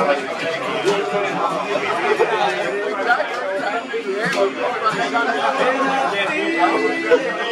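A crowd of people talks and calls out across an open field outdoors.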